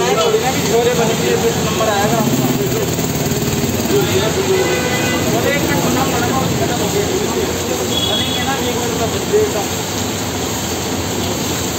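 Food sizzles and hisses steadily on a hot griddle.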